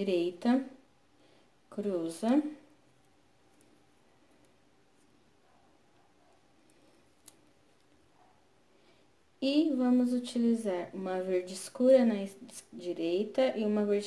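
A woman speaks calmly close by, explaining.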